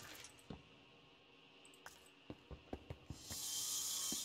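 Short, soft knocks sound as blocks are placed and broken.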